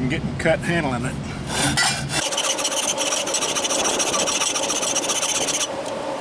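A hammer taps on a metal pipe.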